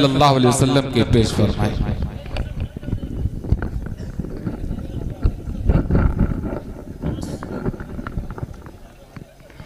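A man speaks forcefully into a microphone over a loudspeaker, his voice echoing.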